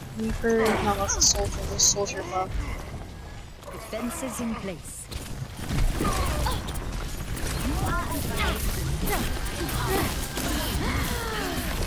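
Energy weapons fire in rapid bursts, with zaps and crackles.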